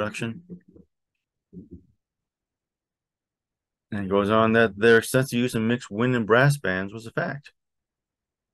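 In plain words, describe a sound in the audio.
A man speaks calmly, close to a microphone, reading out.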